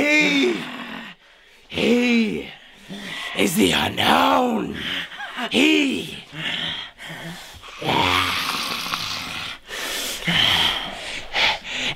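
A young man speaks dramatically and loudly, close by.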